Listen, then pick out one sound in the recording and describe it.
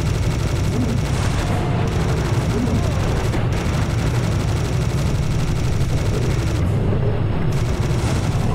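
Monsters roar and grunt.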